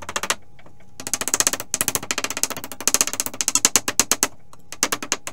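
A hammer knocks against wood in quick taps.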